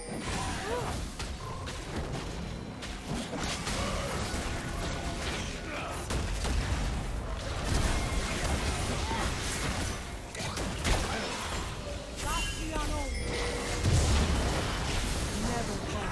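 Video game spells whoosh, crackle and burst during a fight.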